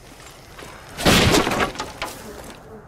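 Wooden boards smash and splinter loudly.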